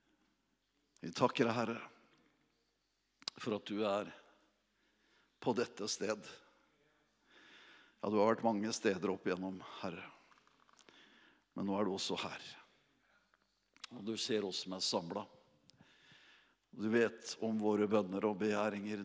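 A middle-aged man speaks calmly into a microphone through loudspeakers, with pauses between phrases.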